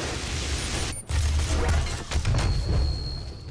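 A large fiery explosion booms.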